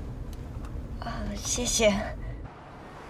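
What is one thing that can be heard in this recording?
A young woman speaks cheerfully inside a car.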